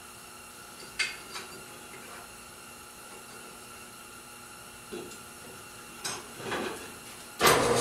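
Metal bars clank and rattle.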